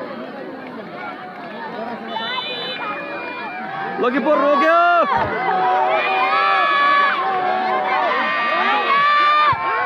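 A large crowd outdoors cheers and shouts excitedly.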